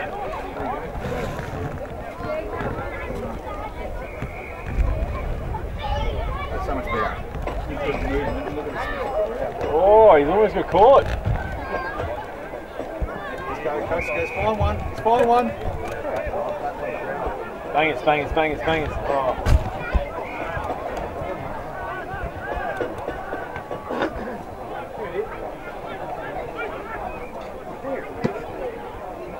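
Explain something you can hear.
Players shout to one another outdoors.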